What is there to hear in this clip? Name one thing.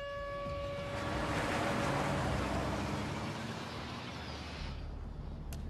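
A car engine revs as a vehicle drives off.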